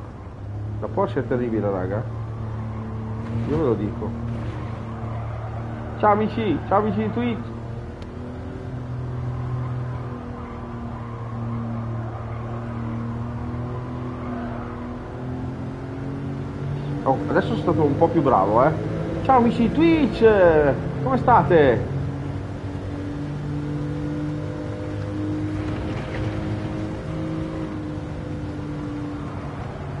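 A racing car engine drones steadily, its pitch shifting as the car speeds up and slows.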